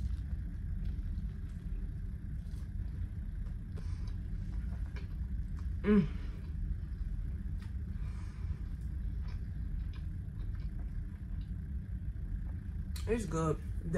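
A young woman eats with wet chewing and smacking sounds close to a microphone.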